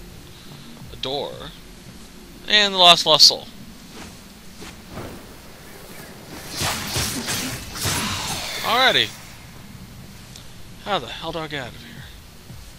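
Blades swish and clang in quick strikes.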